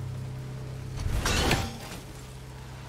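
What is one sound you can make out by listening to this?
An axe whooshes through the air and thuds.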